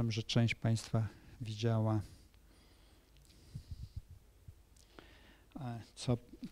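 An elderly man speaks haltingly into a microphone, with pauses.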